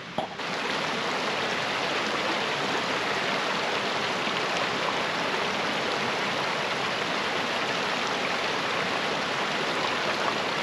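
A shallow creek babbles and splashes over rocks close by.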